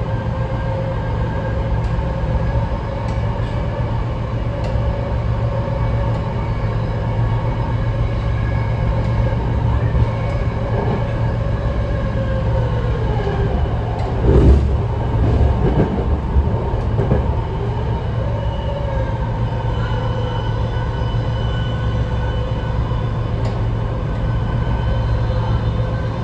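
A train rumbles and hums steadily along the track.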